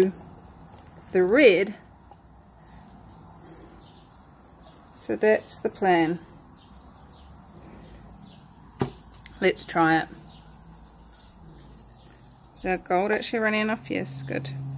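A plastic paint jar is handled and set down with light knocks.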